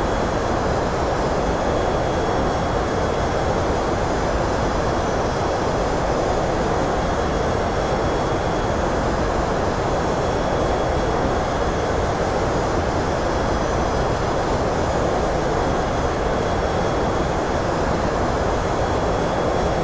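Jet engines and rushing air give a steady, even roar.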